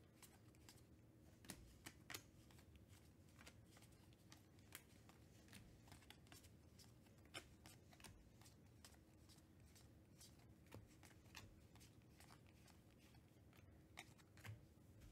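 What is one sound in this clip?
Trading cards flick and slide against each other as they are shuffled by hand.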